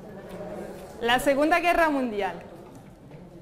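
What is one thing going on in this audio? A young woman speaks calmly to a room, heard from a distance.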